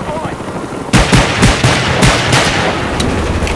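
A gun fires several rapid, loud shots.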